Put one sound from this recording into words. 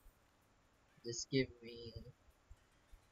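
Short game jingles chime.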